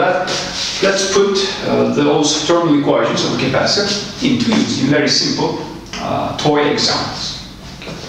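A middle-aged man speaks calmly, as if lecturing.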